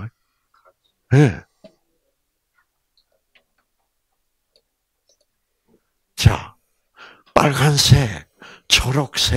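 A man speaks into a microphone in short phrases with pauses.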